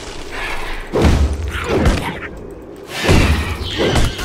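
Heavy blows thud and slash against a creature.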